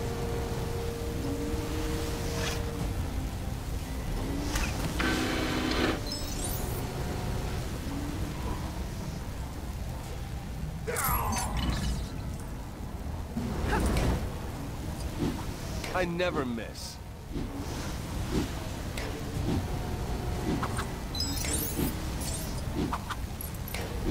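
Flames roar steadily in a furnace.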